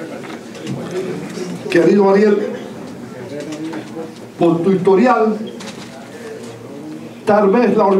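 A middle-aged man speaks with animation into a microphone over a loudspeaker.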